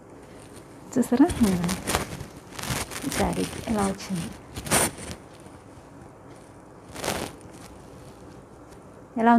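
Fabric rustles as a woman handles a blouse.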